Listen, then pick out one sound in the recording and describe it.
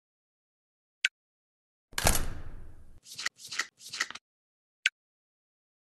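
Short chimes and whooshes sound as cards flip over.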